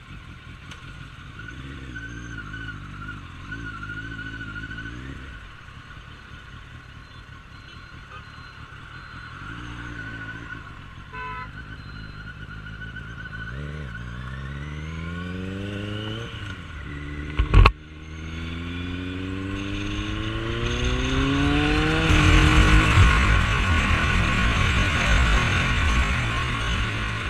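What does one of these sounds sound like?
A motorcycle engine hums and revs up as it accelerates.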